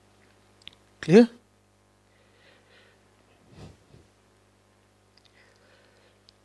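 A man speaks calmly into a microphone, close by, with long pauses.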